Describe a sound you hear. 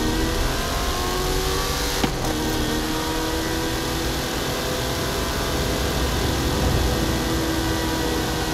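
A car engine roars steadily at high speed.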